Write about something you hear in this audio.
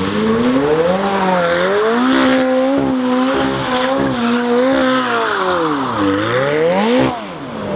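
Tyres screech and squeal on tarmac.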